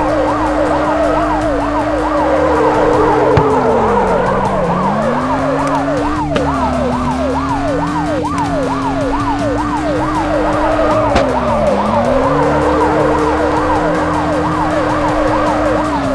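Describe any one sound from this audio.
A car engine hums steadily, its pitch dipping and rising with speed.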